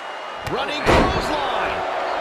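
A body slams onto a wrestling ring mat with a loud thud.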